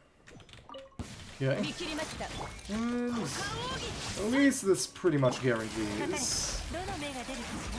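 Magic attacks whoosh and crackle in a fight.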